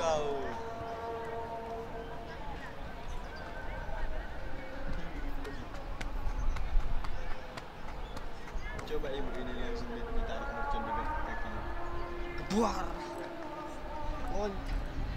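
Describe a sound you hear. Young players shout and call to one another in the distance, outdoors.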